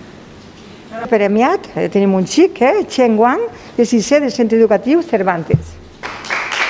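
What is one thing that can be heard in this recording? A woman reads out clearly through a microphone in an echoing room.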